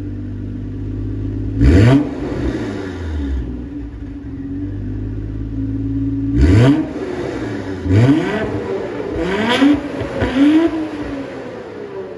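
A car engine idles with a deep exhaust rumble.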